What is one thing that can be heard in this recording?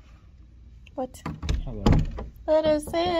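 An electronic door lock beeps and clicks.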